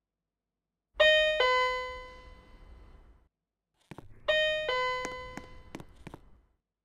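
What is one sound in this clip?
An elevator chime rings with two falling tones.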